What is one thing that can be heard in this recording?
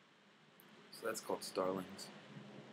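A man speaks close by in a casual voice.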